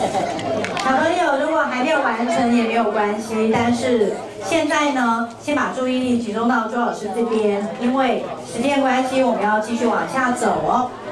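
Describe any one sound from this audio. A woman talks calmly up close.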